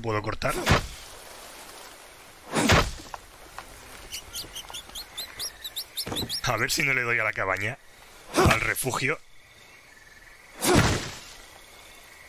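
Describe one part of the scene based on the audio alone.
An axe chops into a tree trunk with sharp thuds.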